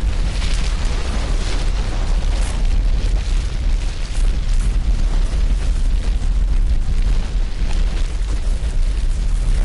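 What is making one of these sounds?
A huge fire roars and rumbles loudly.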